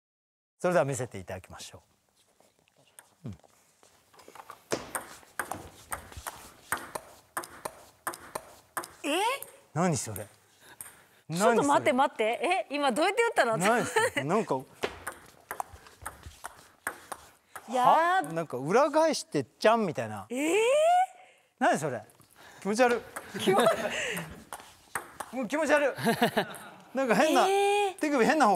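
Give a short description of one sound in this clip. Young men talk and exclaim with animation.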